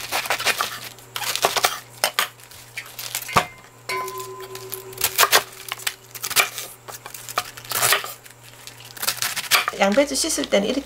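A knife chops through cabbage onto a wooden board.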